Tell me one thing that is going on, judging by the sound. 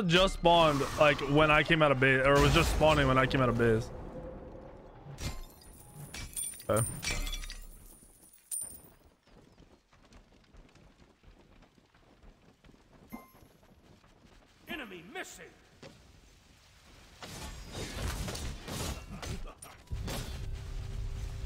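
Video game spells whoosh and burst.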